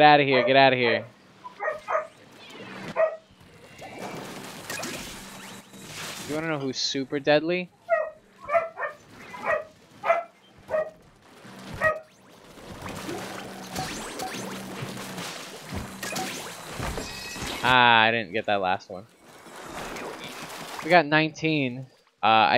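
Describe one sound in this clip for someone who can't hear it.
Ink blasters fire with rapid wet splats.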